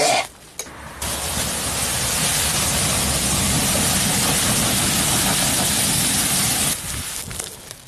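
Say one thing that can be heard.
A fierce, sparking fire hisses and roars.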